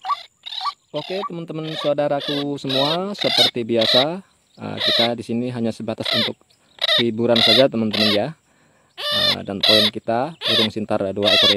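A bird squawks loudly and harshly, close by.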